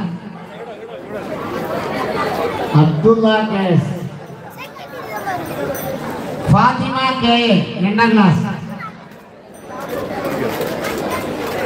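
A crowd of young voices chants along.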